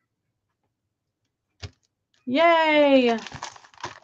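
Paper cards slide and rustle as they are moved.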